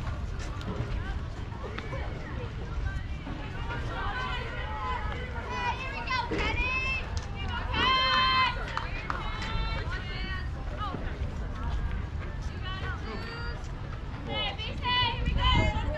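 Young players shout and cheer across an open field.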